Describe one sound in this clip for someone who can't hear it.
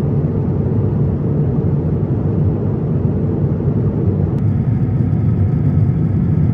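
A jet airliner's engines roar with a steady, low drone from inside the cabin.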